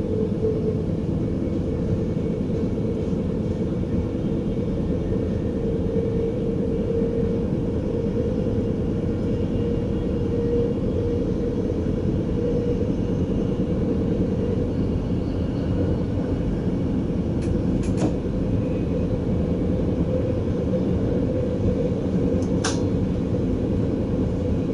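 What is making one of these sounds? A train rumbles steadily along the rails from inside the cab.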